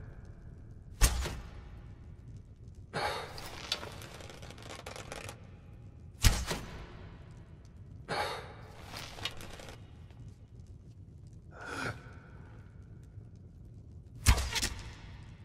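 An arrow thuds into its target.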